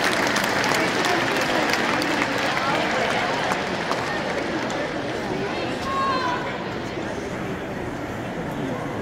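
A large crowd cheers and claps in a big echoing arena, then quiets a little.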